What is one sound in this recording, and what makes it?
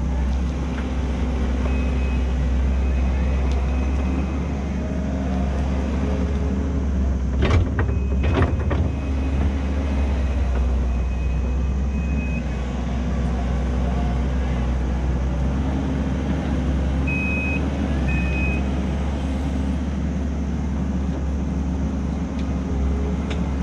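A skid steer loader's diesel engine rumbles steadily nearby.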